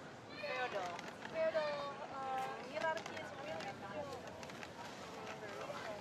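Plastic snack bags rustle.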